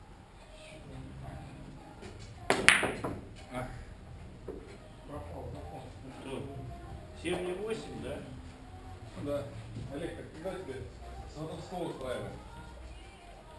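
Men talk quietly across an echoing room.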